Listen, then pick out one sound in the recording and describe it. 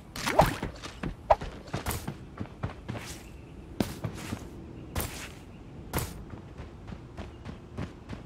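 Footsteps thud quickly on the ground as a game character runs.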